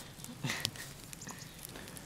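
A wood fire crackles.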